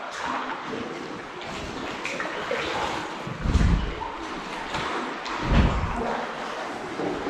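Paddles splash and drip in calm water close by.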